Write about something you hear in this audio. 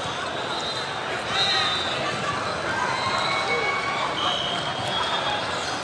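Many voices of young people chatter and call out in a large echoing hall.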